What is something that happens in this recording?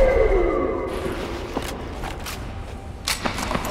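Footsteps scuff quickly over a hard floor.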